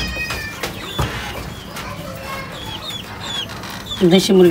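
Young chickens peep.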